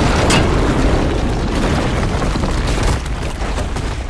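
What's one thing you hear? Wind roars and debris rushes in a violent storm.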